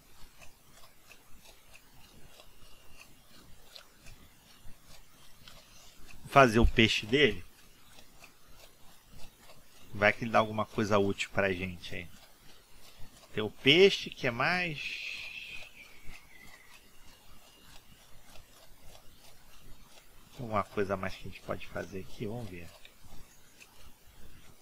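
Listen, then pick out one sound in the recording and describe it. Footsteps run steadily over grass and stone.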